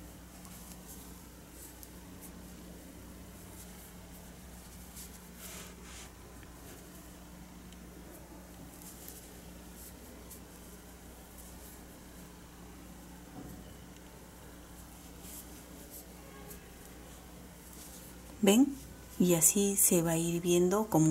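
Yarn rustles softly as a crochet hook pulls it through stitches.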